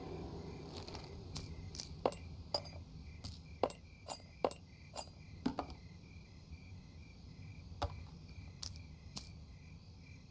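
Short sharp clicks sound as items are picked up and moved.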